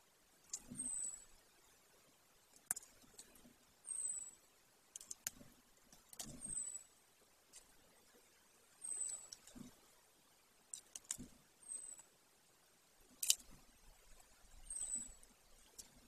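A large bird tears at prey in a nest, with soft tearing, rustling and snapping of twigs.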